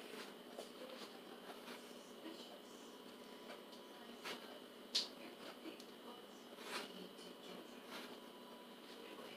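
Clothing rustles and scrapes close by.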